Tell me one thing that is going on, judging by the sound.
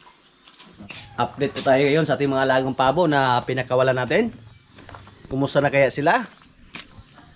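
A man speaks calmly close by, outdoors.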